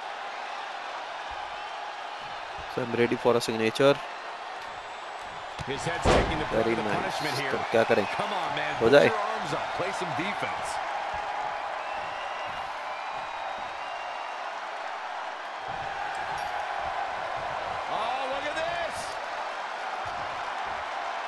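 A large crowd cheers steadily in an arena.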